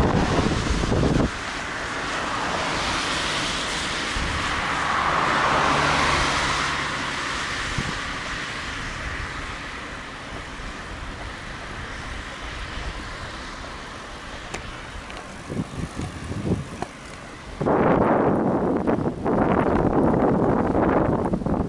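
Bicycle tyres roll and rumble over a paved path.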